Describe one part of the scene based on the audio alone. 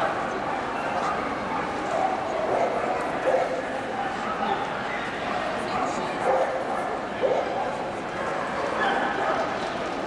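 A man and a woman talk quietly nearby.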